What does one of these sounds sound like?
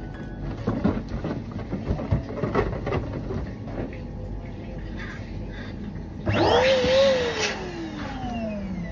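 Rubber balloons squeak and rub together as they are handled and twisted.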